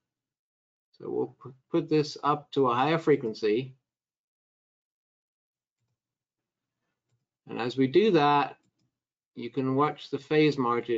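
A middle-aged man speaks calmly into a microphone, heard as if through an online call, with pauses.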